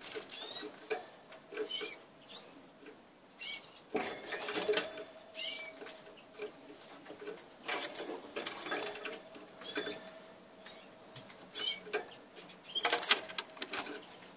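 A canary chirps and twitters in short bursts, close by.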